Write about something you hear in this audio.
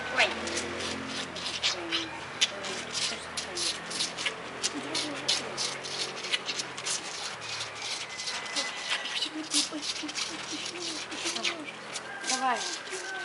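Young girls talk and laugh close by.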